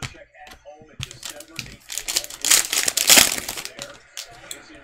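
A foil card pack tears open and crinkles.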